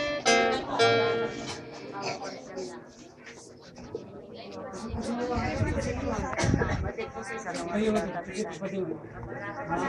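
A choir of young children sings together nearby.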